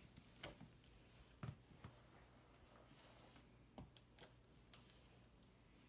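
Small plastic clicks and taps come from a toy being handled close by.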